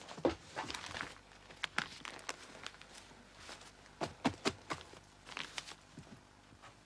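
Newspaper pages rustle as they are turned.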